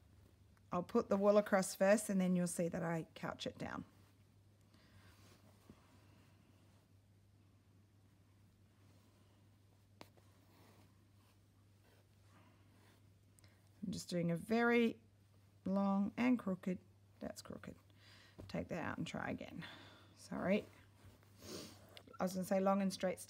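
Fabric rustles softly as hands handle and fold it.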